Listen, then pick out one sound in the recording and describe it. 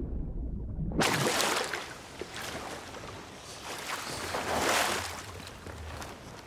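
Water splashes loudly as a swimmer breaks the surface.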